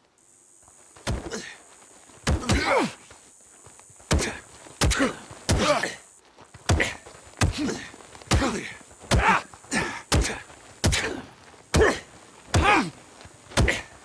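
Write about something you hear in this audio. Men grunt with effort while fighting.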